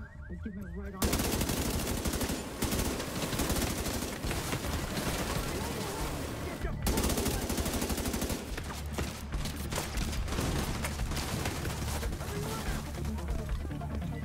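Rifles fire rapid, loud bursts of gunshots.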